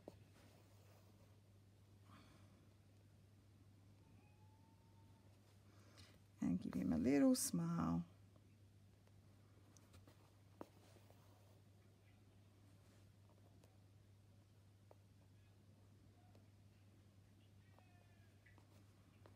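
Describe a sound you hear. Thread is pulled through cloth with a soft rustle.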